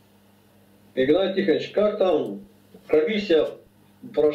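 A middle-aged man speaks with animation through an online call.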